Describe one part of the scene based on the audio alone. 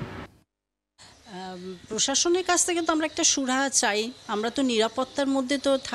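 An elderly woman speaks close to a microphone, with animation.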